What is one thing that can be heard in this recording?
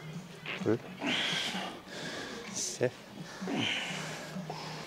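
A man breathes out hard with each pull.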